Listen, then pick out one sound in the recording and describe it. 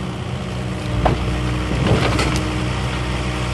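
Logs knock and clatter against each other.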